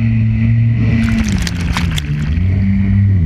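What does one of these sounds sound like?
Water splashes and sprays over a jet ski.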